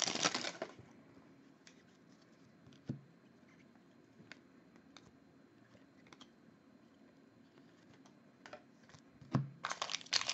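Cards flick and shuffle softly in hands.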